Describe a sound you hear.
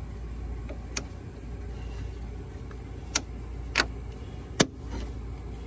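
Pliers click and snap against metal parts.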